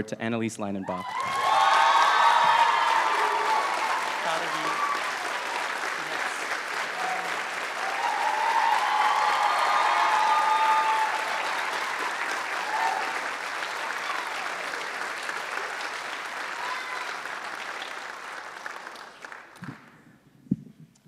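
An audience applauds loudly and then fades away.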